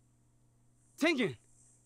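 A second man speaks a short word, close by.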